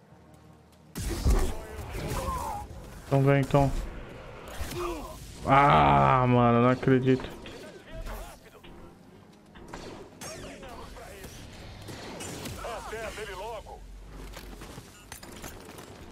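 Blaster shots zap and clatter.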